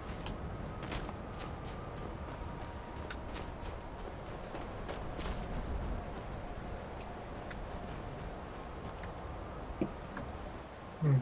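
Wind howls steadily through a snowstorm.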